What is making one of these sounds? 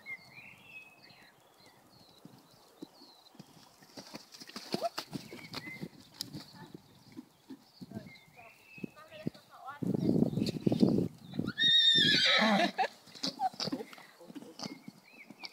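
A horse's hooves thud on soft sand as it trots and canters.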